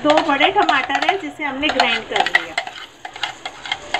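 A thick paste plops from a jar into a hot pan.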